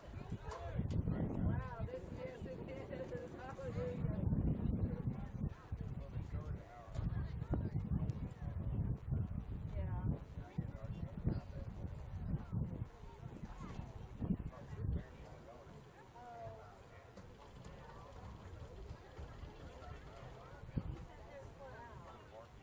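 Men and women in a small crowd of spectators chat nearby.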